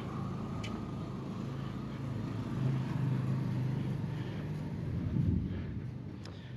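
A motorcycle engine hums nearby and fades away.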